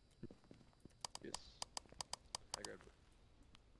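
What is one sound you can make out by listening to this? Footsteps crunch on gravel outdoors.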